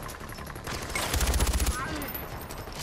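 A rapid burst of gunfire rings out.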